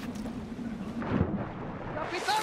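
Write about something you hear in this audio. A body plunges into water with a heavy splash.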